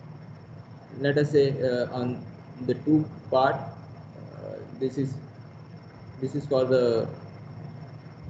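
A man explains calmly, heard through an online call.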